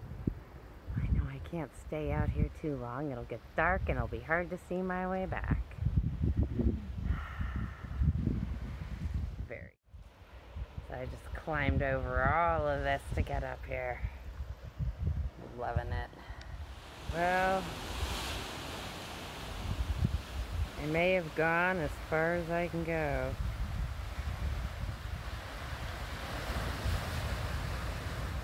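Waves wash gently against rocks below.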